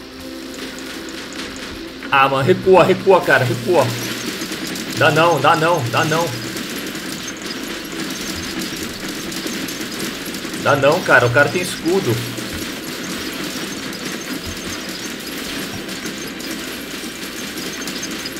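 Heavy guns fire in rapid bursts.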